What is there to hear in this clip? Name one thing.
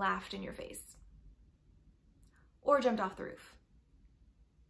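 A young woman speaks calmly and close to a microphone, in short phrases.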